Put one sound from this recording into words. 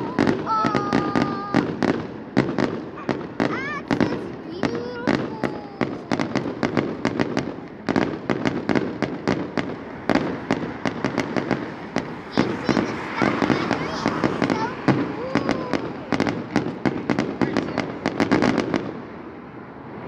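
Fireworks bang and crackle in rapid bursts, echoing outdoors.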